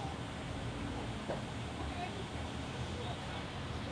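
Pickaxe blows chip and crack stone blocks.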